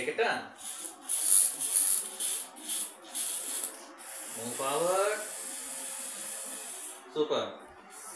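A small toy robot's electric motors whir as it rolls across a hard floor.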